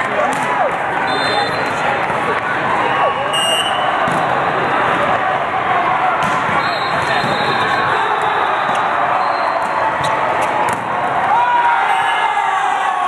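A crowd of voices chatters and calls out in a large echoing hall.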